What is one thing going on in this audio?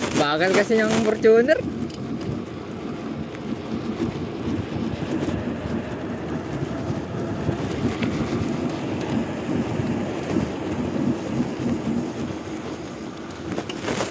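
Wind buffets loudly against the microphone while riding.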